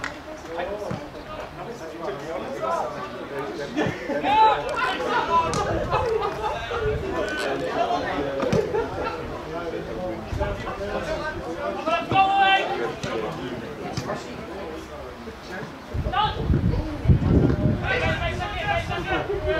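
Young men shout to one another across an open field outdoors.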